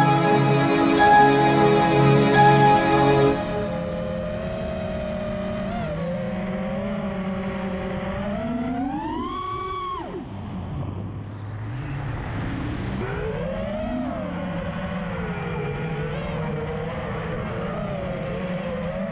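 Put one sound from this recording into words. A small drone's motors whine close by, rising and falling in pitch as it speeds up and slows down.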